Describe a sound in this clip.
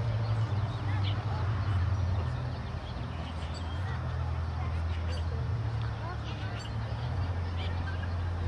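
A crowd of people chatter outdoors at a distance.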